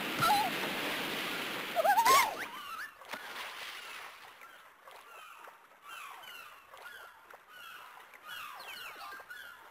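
Water splashes as a character swims.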